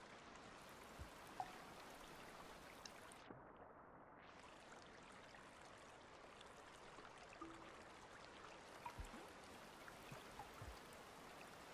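Soft low thumps sound now and then.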